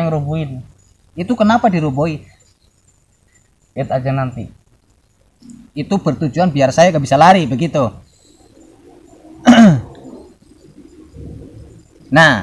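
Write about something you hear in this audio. A second young man answers, close by.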